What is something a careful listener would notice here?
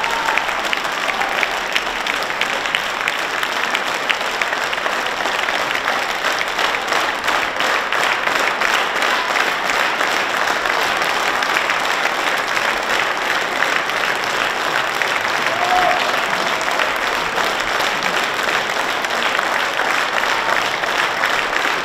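A large audience applauds steadily in a big echoing hall.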